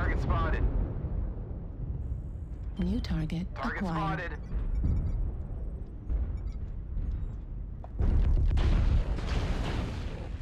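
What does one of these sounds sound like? Explosions boom in a mech combat game.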